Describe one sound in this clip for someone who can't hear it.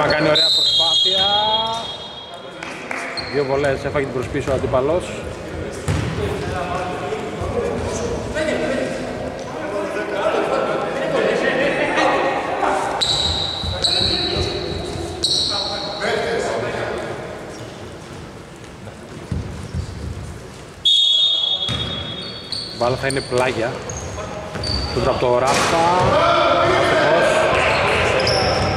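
Sneakers squeak sharply on a wooden court in a large echoing hall.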